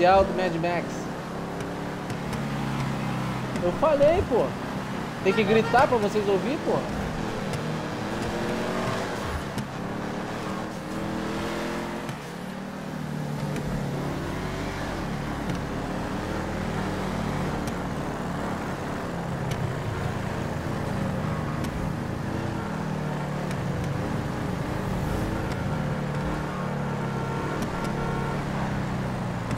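A car engine roars steadily at speed.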